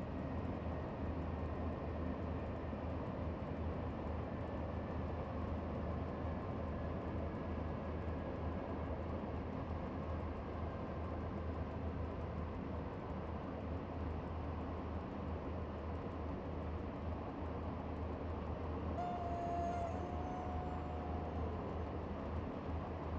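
A diesel locomotive engine rumbles steadily as a train runs along.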